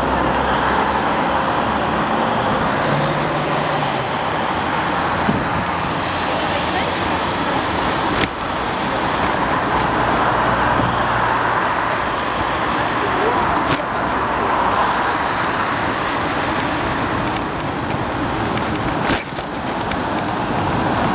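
City traffic hums steadily outdoors at night.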